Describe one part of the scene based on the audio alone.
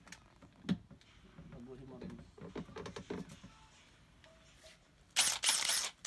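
A clamp clicks and clatters as it is adjusted.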